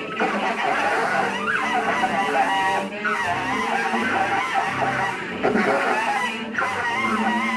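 A saxophone plays shifting, squealing phrases.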